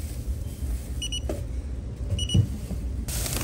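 A card terminal beeps twice in quick pairs.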